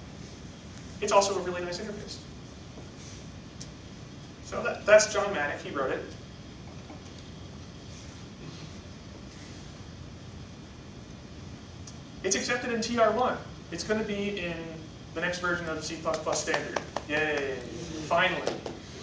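A man lectures calmly in a room with a slight echo, pausing between phrases.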